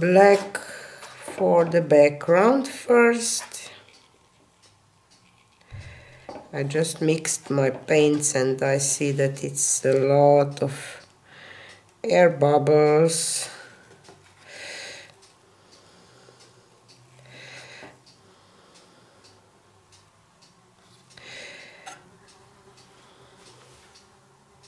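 A palette knife spreads thick wet paint with soft, squelching scrapes.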